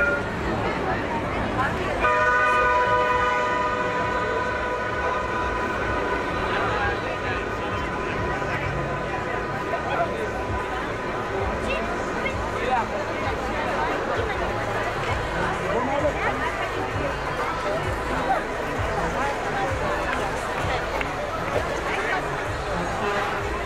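A crowd of people chatters all around, outdoors.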